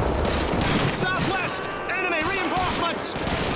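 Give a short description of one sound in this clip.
A man shouts urgently over a radio.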